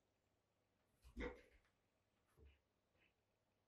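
A plastic tray knocks down onto a table.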